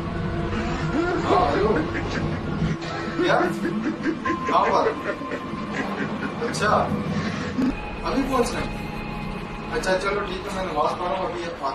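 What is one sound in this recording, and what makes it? A young man talks into a phone up close.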